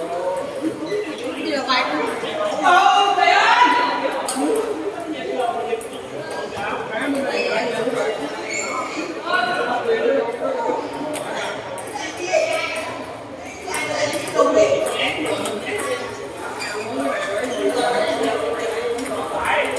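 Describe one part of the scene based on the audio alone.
Table tennis balls click against paddles and tables.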